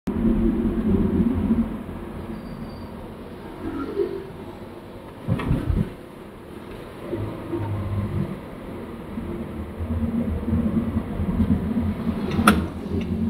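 Tyres roll on the road surface.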